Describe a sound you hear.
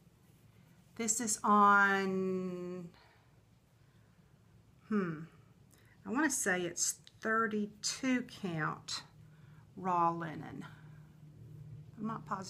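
A middle-aged woman talks with animation, close by.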